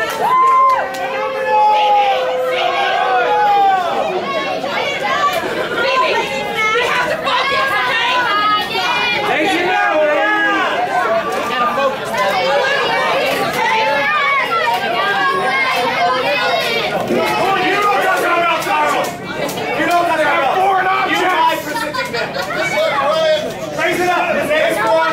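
A crowd of spectators shouts and chatters throughout, in a large echoing hall.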